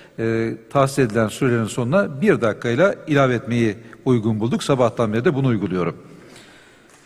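A middle-aged man speaks firmly into a microphone in a large echoing hall.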